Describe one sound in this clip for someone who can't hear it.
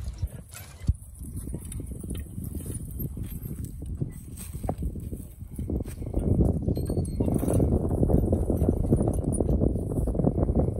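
A horse-drawn plough scrapes and crunches through soil.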